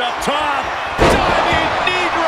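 A body slams down hard onto a wrestling mat with a loud thud.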